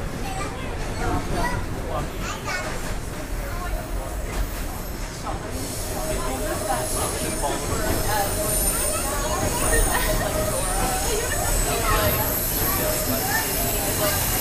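Voices of passengers murmur nearby in the carriage.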